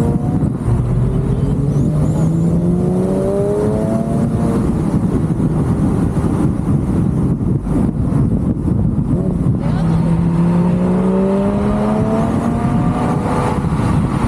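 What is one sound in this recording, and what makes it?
A car engine revs up, rising in pitch as it speeds up through the gears.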